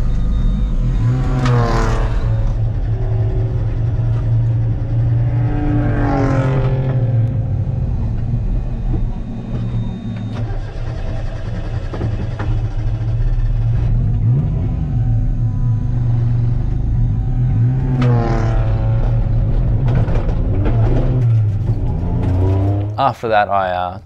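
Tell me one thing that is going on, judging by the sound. A race car engine drones loudly and revs up and down.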